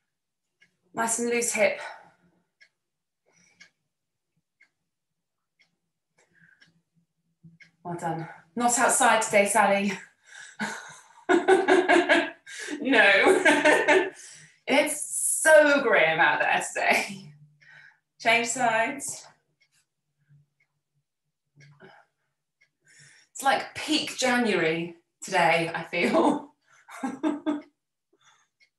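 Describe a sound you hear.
A woman talks calmly and clearly nearby, in short bursts.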